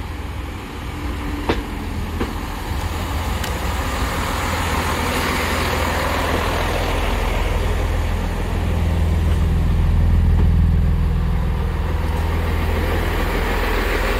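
Train wheels clack and squeal on the rails.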